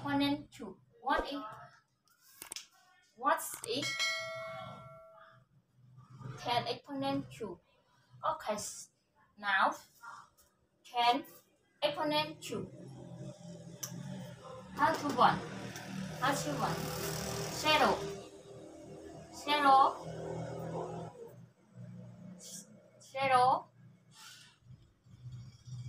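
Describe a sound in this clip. A young woman explains a lesson calmly, heard close by.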